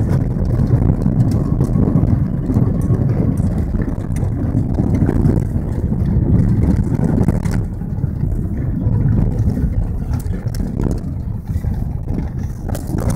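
A car engine rumbles steadily from inside the cabin.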